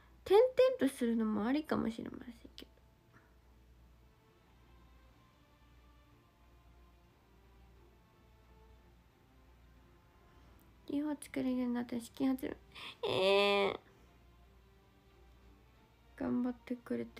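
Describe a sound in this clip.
A young woman speaks softly and playfully close to a microphone, with pauses.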